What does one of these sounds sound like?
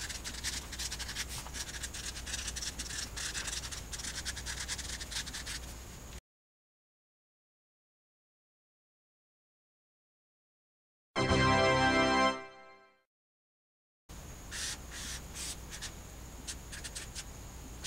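A marker squeaks and scratches across a board.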